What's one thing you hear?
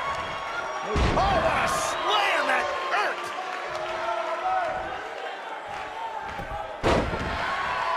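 A body slams heavily onto a wrestling ring mat with a loud thud.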